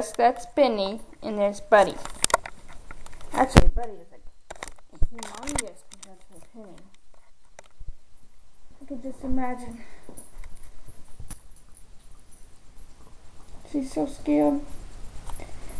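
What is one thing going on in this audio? A young person speaks close to a phone microphone in short bursts.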